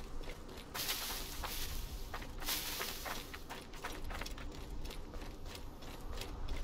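Footsteps run quickly over sand and gravel.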